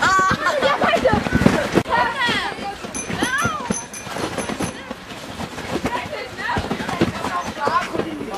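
A trampoline thumps and creaks as children bounce on it.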